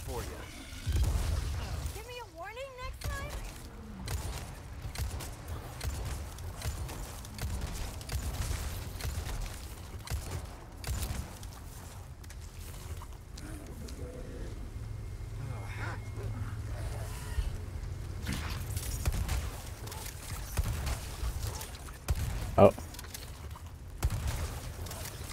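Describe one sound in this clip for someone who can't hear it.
Gunshots boom in quick bursts.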